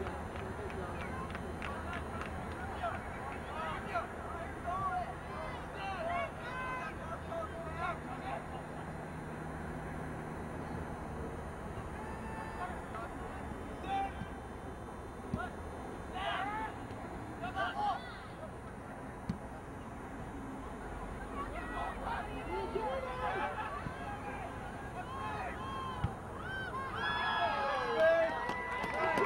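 Young men shout to one another outdoors, some near and some farther off.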